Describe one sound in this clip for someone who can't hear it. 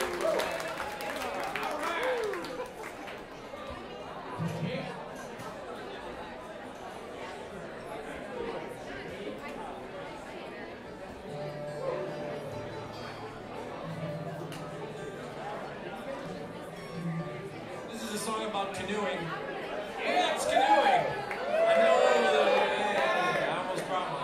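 A string band plays a lively tune.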